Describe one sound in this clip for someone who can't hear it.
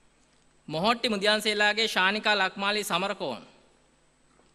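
A man announces calmly through a loudspeaker in a large hall.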